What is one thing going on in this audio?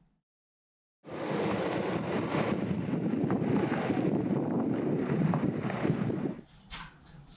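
A car engine rumbles as a vehicle rolls slowly over gravel.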